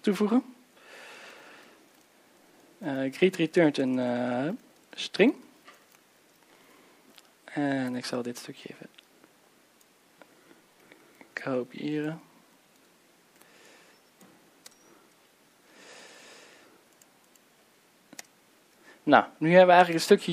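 A man speaks calmly into a microphone, pausing often.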